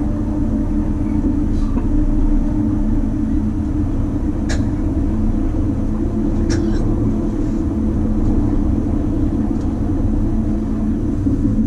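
A train rumbles and hums steadily along the tracks.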